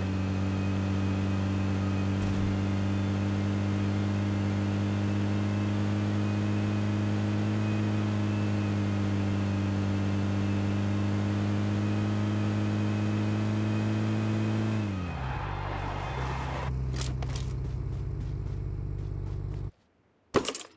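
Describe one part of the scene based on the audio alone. A vehicle engine drones steadily, then drops in pitch and idles.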